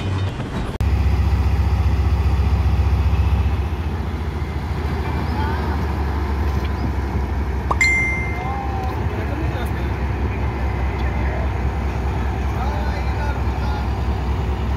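A diesel locomotive engine idles with a deep, steady throbbing rumble.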